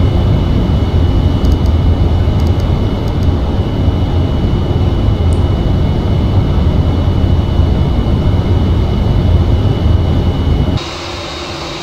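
Jet engines rumble with a deep, steady roar, heard from inside a cockpit.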